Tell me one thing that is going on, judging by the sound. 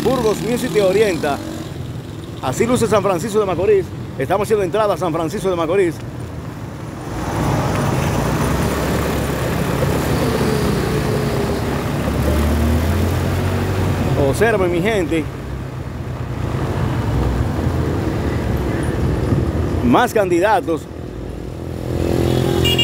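A motorcycle engine hums close by.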